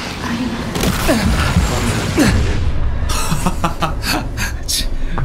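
A loud explosion bursts and fades.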